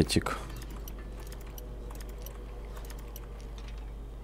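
A metal lock pick scrapes and clicks faintly inside a lock.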